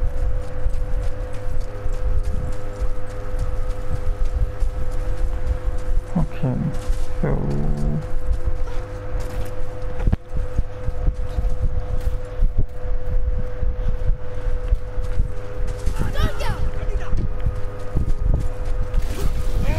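Heavy footsteps thud on rough ground.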